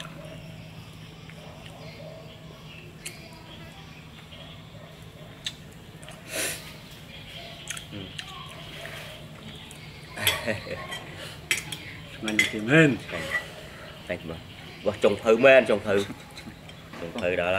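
Chopsticks click against plates and bowls.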